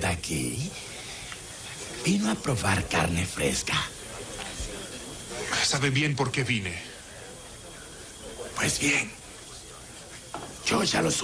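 A man speaks in a low voice close by, in short bursts.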